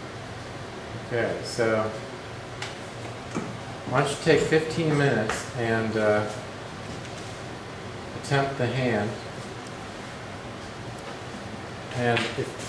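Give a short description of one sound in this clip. A man speaks calmly close by, explaining in short phrases.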